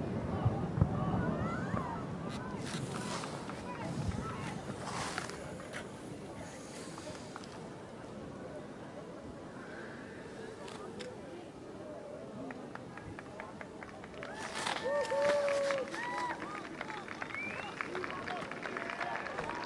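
A flare burns with a steady fizzing hiss.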